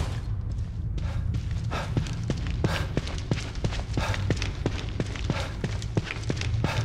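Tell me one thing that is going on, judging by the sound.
Footsteps thud quickly along a floor.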